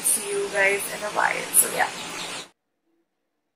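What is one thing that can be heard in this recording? A young woman speaks close by with animation.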